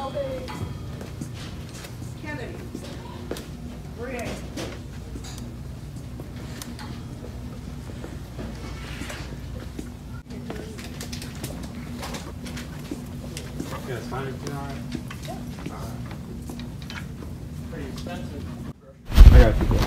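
A shopping cart rolls and rattles over a smooth floor.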